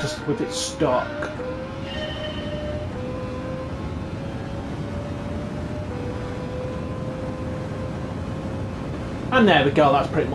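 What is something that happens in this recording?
A racing car engine whines steadily at high speed, slowly rising in pitch.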